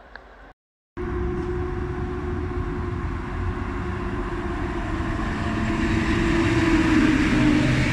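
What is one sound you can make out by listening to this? An electric locomotive hums loudly as a train pulls in.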